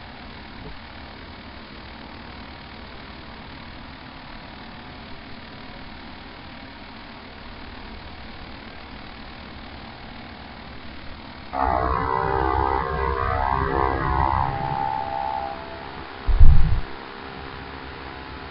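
Propeller engines drone steadily.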